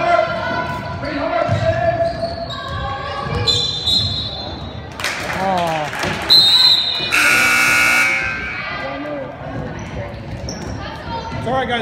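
Young girls shout and call out across a large echoing hall.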